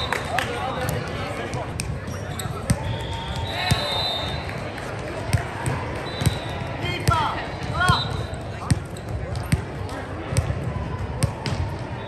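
A crowd of players and spectators chatters throughout a large echoing hall.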